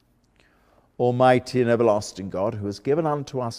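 An elderly man speaks calmly and clearly, as if reading aloud.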